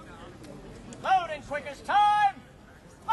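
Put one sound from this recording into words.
A man shouts a drawn-out command loudly.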